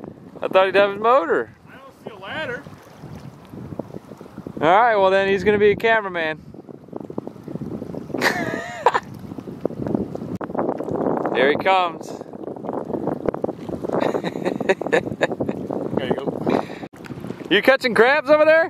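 Small waves lap softly on open water.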